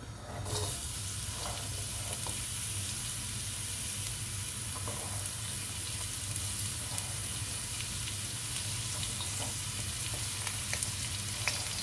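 A knife scrapes chopped onion off a plastic board.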